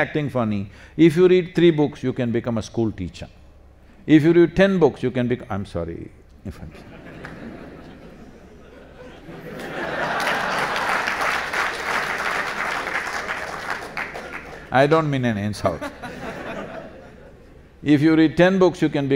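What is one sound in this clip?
An elderly man speaks calmly and expressively into a microphone.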